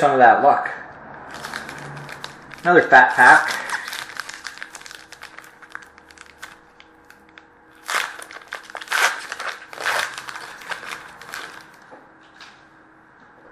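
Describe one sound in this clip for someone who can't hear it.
Plastic packaging crinkles and clicks as hands open a pack of cards.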